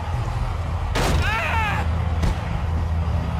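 A man shouts in anger as he falls.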